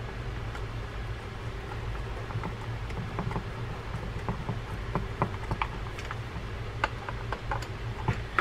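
A screwdriver turns a small screw with faint metal clicks.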